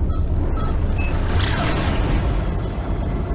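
A spaceship bursts into a rushing whoosh as it speeds up.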